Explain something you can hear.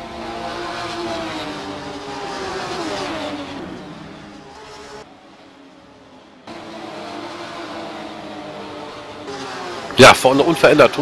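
Racing car engines roar and change pitch as the cars speed past.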